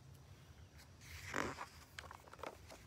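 A book's page rustles as it turns.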